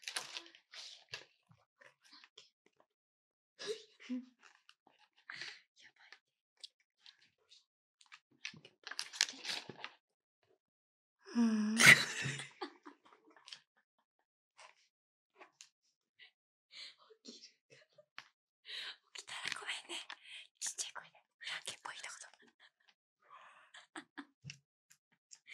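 Plastic masks rustle and tap close to a microphone.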